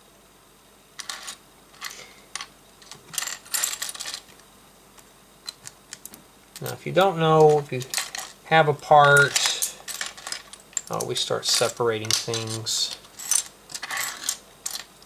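Small plastic bricks clatter and click as a hand sorts through them.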